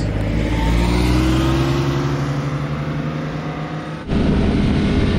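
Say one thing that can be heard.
Car engines rumble as cars pull away.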